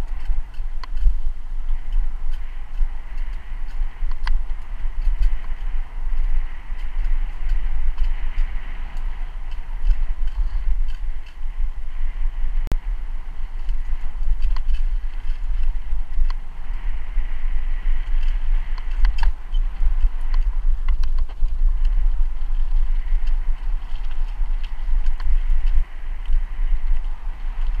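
Bicycle tyres crunch and rattle over a rough dirt path.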